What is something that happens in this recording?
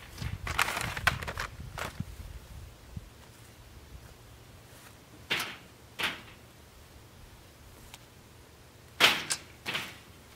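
Objects thump and clatter into a wooden cart.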